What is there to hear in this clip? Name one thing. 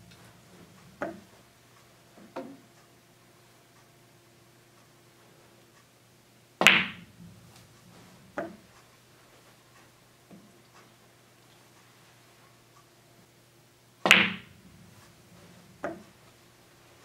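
Billiard balls knock together with soft clicks.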